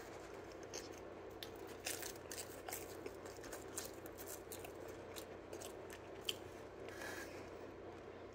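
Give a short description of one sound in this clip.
A young man bites and chews crusty pizza close by.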